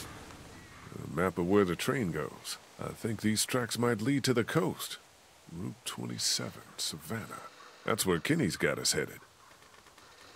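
A man speaks calmly and thoughtfully, close by.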